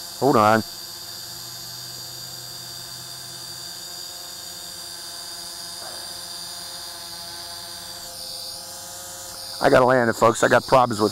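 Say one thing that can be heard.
A drone's propellers whine steadily.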